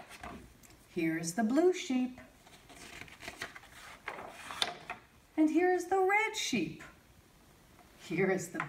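A woman reads aloud clearly and expressively, close by.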